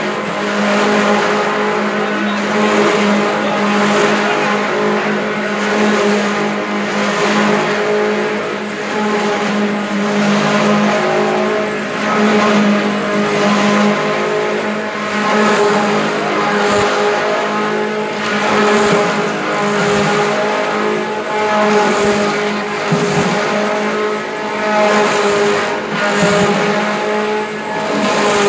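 A machine hums and drones steadily.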